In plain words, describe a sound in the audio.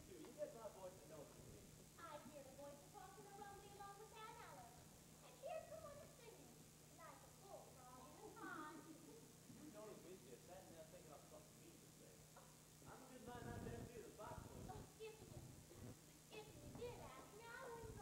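A woman speaks her lines on a stage, heard from a distance in a hall.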